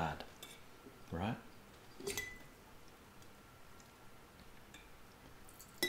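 A spoon clinks against a glass jar.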